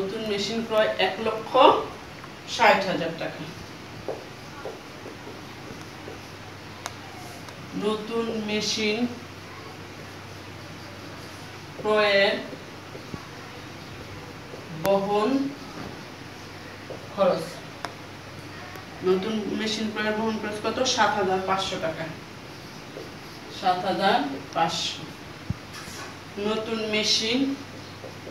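A woman speaks calmly in short phrases, close by.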